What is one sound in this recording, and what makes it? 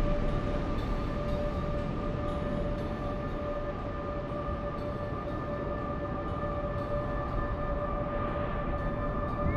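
Water rushes along a ship's hull.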